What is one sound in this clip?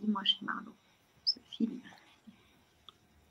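A woman speaks briefly over an online call.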